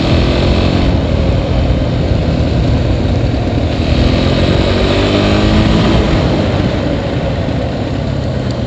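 A quad bike engine revs and putters loudly close by.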